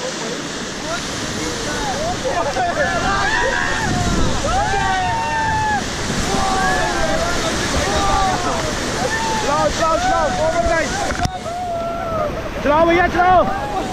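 A group of young men and women cheer and shout with excitement close by.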